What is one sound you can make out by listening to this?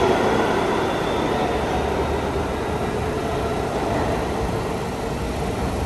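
A subway train rumbles toward a station from a distance, growing louder.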